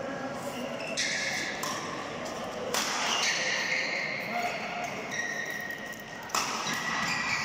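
Shuttlecocks are struck sharply with rackets in a large echoing hall.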